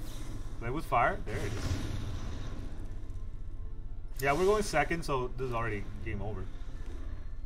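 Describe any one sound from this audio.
A man speaks with animation into a microphone, close by.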